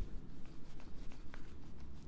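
Hair clippers buzz close by.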